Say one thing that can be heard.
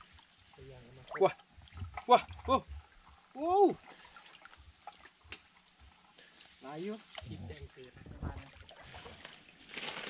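Legs wade through shallow water.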